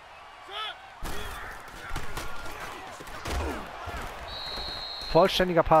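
Football players collide with thudding impacts.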